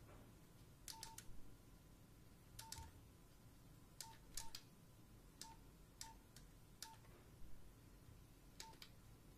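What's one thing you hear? A mobile phone beeps briefly with each key press.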